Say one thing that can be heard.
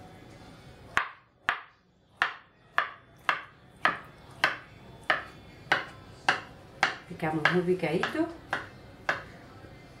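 A knife chops through soft food onto a wooden board in quick, even strokes.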